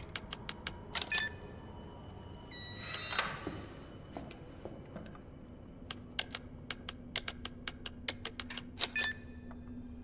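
An electronic beep sounds after a code is entered.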